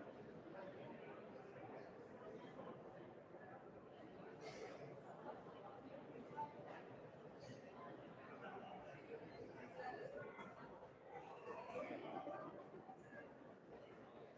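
A crowd of people murmurs and chats quietly in a large echoing hall.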